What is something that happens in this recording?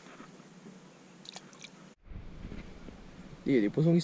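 A small fish drops into the water with a light splash.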